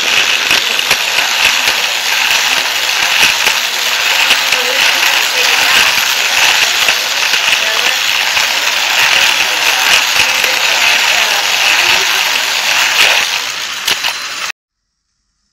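A small toy car rattles and whirs loudly along a plastic track.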